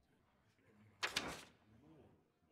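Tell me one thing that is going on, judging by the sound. A page turns with a quick papery swish.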